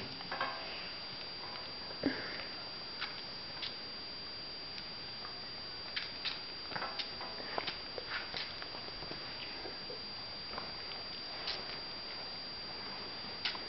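A small squirrel sucks and chews noisily at a feeding syringe.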